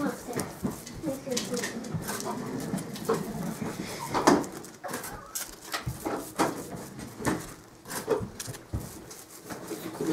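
A knife scrapes butter across crisp toast.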